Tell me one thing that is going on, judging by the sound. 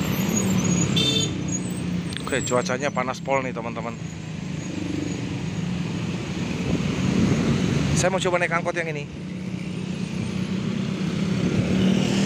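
Motorbike engines hum as they pass.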